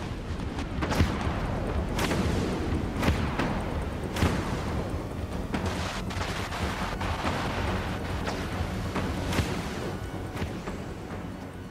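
Heavy cannons boom in loud, repeated blasts.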